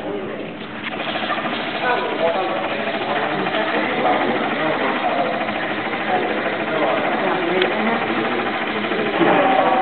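A woman talks nearby in a plain, businesslike tone.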